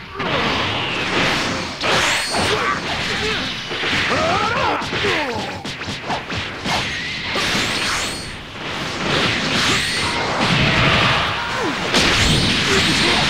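Heavy punches land with sharp thuds.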